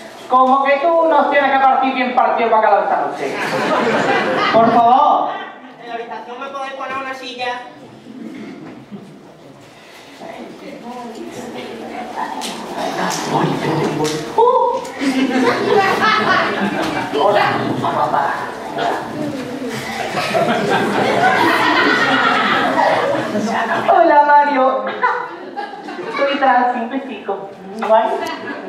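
A man and women speak with animation, heard from a distance.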